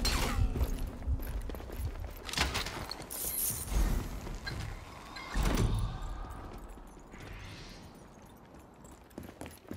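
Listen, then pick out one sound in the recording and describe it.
Footsteps patter on hard floors.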